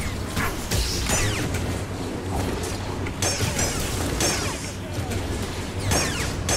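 Lightsabers hum and swoosh as they swing through the air.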